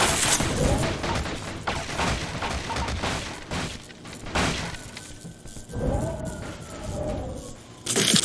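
Wooden crates crash and clatter as they tumble and break apart.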